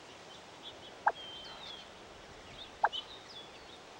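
A short electronic blip sounds as a menu choice moves.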